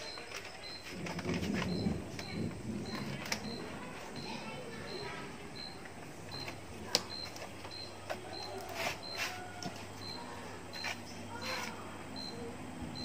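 Plastic film crinkles as hands stretch it over a box.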